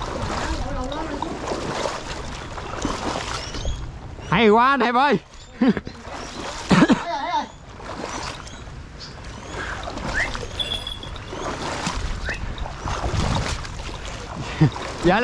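Water sloshes as a person wades through a pond.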